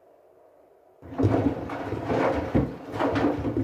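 Water sloshes and splashes loudly inside a washing machine drum.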